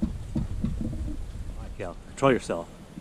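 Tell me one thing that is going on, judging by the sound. Footsteps thud on a wooden footbridge.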